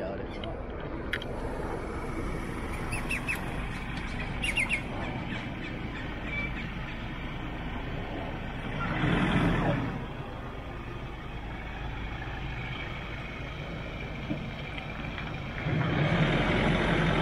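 A pickup truck engine hums as the truck drives slowly.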